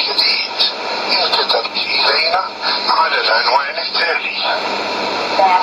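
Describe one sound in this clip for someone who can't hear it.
A radio plays a broadcast through its small loudspeaker, with hiss and crackling static.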